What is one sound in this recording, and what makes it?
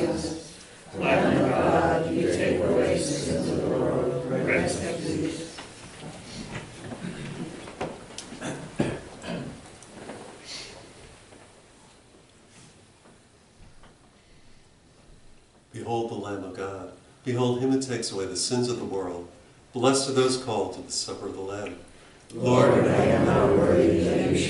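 An elderly man chants prayers aloud in a calm, steady voice in a room with slight echo.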